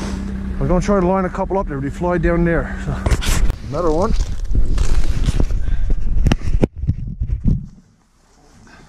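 A snowmobile engine idles and revs close by.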